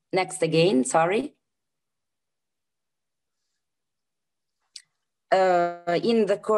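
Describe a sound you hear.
A woman speaks calmly over an online call, pausing between phrases.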